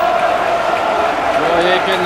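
A man shouts excitedly.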